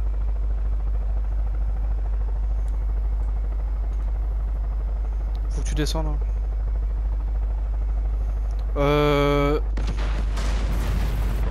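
A helicopter's rotor thrums in flight.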